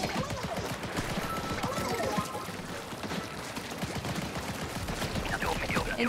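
A toy-like blaster sprays liquid in rapid wet, splattering bursts.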